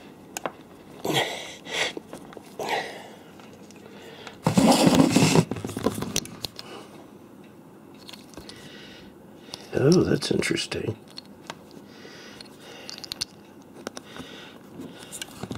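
A plastic connector clicks and rattles as fingers handle it close by.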